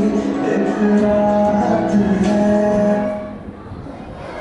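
Music with a melody plays over a loudspeaker in a hall.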